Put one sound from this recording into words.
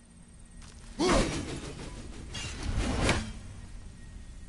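A thrown axe whooshes through the air and strikes metal with a loud clang.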